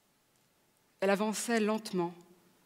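A woman speaks on a stage through a microphone in a large hall.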